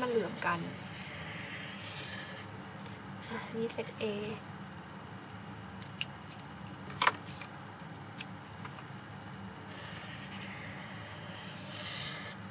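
A felt-tip marker scratches and squeaks across paper.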